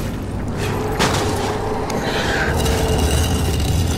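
A heavy wooden crate scrapes and grinds as it is pushed.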